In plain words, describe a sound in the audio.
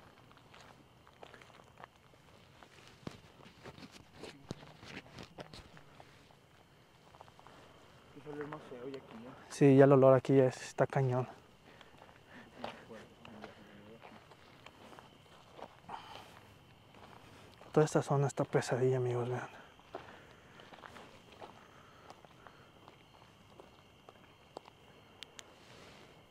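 Footsteps crunch on a gravel track.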